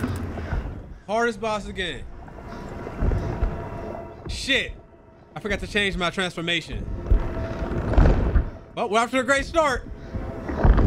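A young man exclaims and laughs close to a microphone.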